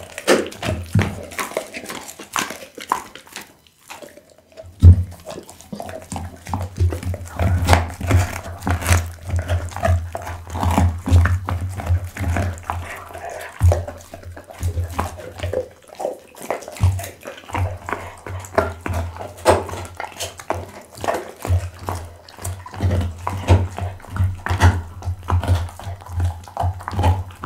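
A dog chews and crunches on raw meat and bone close to a microphone.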